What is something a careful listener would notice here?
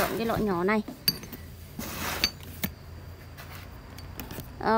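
Plastic bottles knock and rattle against each other.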